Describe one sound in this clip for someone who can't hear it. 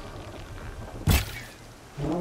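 An arrow is loosed with a sharp snap.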